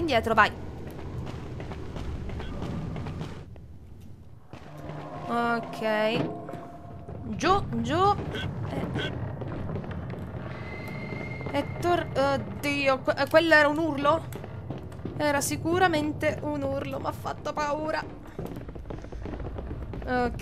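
Footsteps patter quickly on a hard floor in an echoing cave.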